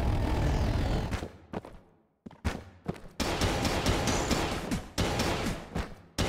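Rapid video game gunfire and bullet effects crackle in bursts.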